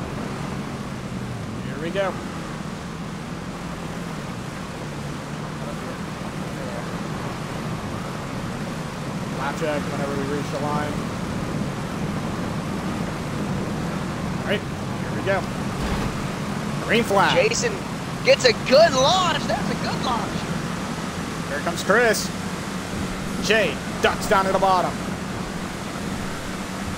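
Race car engines drone steadily at speed.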